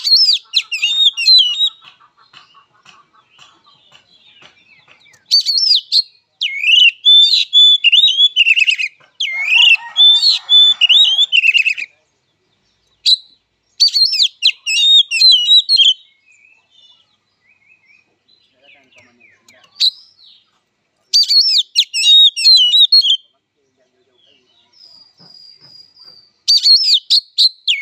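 A songbird sings loud, varied whistling phrases close by.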